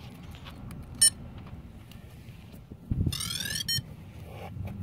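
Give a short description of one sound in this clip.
A toy drone beeps in a quick series of rising electronic tones.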